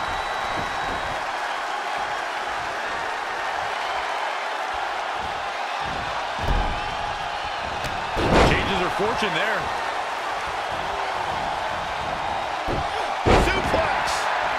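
A large crowd cheers steadily in a big arena.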